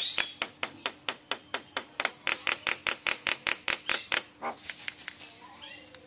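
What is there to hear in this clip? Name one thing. A bird calls close by with rapid, sharp clicking chirps.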